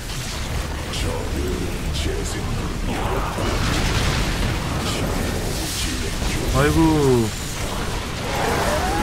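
Laser beams fire and buzz in a battle.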